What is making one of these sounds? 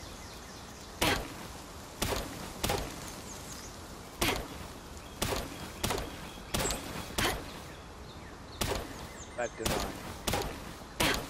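An axe chops into a tree trunk in steady blows.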